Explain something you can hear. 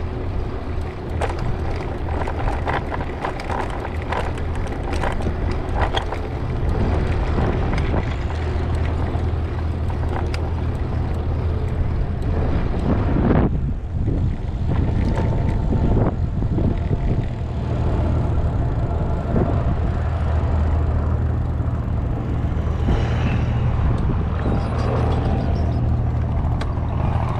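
Tyres rumble and rattle over paving bricks.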